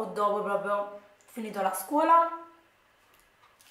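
A young woman speaks close up with animation.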